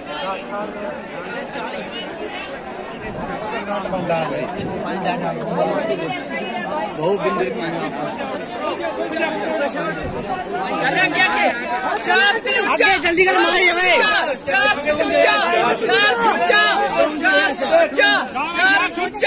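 A crowd of young men chatters outdoors.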